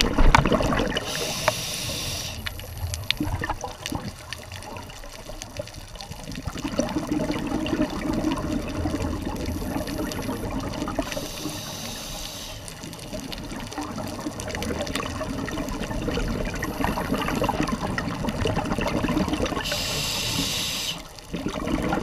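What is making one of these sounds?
A scuba diver's exhaled bubbles gurgle and rush from a regulator underwater.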